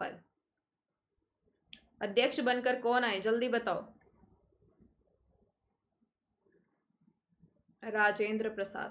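A young woman speaks calmly and clearly into a close microphone, with pauses.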